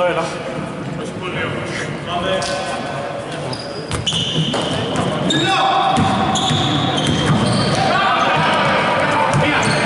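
Sneakers squeak sharply on a wooden floor in a large echoing hall.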